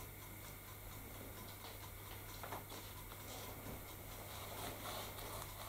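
A paintbrush dabs paint onto a rough surface.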